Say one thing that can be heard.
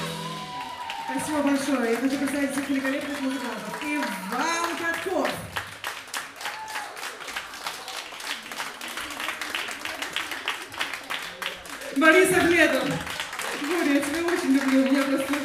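A woman sings into a microphone with a live band.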